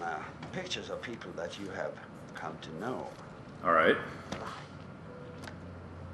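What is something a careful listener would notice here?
Book pages rustle as they are flipped.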